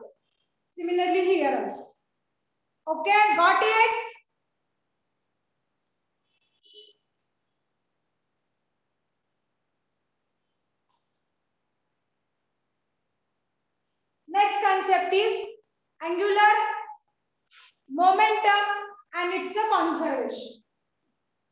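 A young woman speaks clearly and calmly, as if teaching.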